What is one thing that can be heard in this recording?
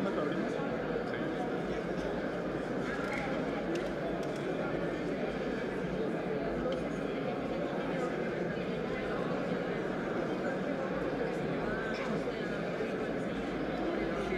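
A crowd of people chatters steadily in a large echoing hall.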